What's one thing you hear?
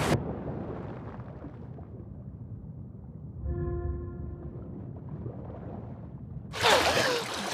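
Water gurgles in a low, muffled rush underwater.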